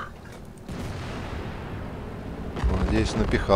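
A tank cannon fires with a deep boom that rolls away.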